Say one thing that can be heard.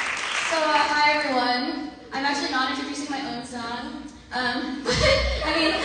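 A second young woman begins singing into a microphone.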